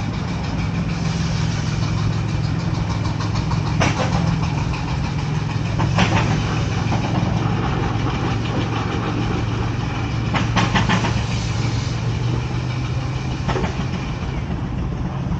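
A steam engine puffs rhythmically, with louder bursts now and then.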